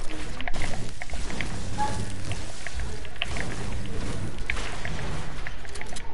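A pickaxe chops repeatedly into wood with dull thuds.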